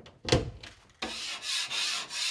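A blade scrapes across a wall.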